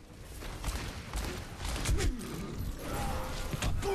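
A revolver fires shots in a video game.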